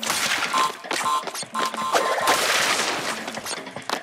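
Wooden crates smash and splinter.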